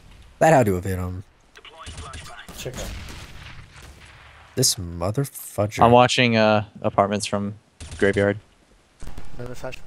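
A rifle fires a few single shots.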